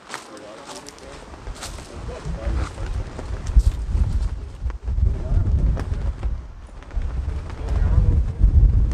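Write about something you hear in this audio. Wind gusts across the microphone outdoors.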